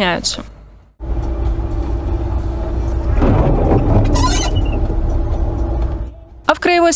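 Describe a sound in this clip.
A car engine rumbles steadily, heard from inside the car.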